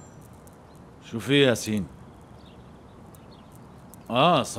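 A middle-aged man speaks into a phone in a deep voice.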